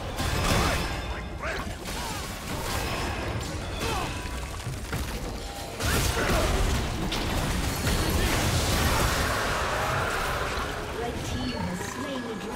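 Game spell effects crackle, whoosh and thud in a fast battle.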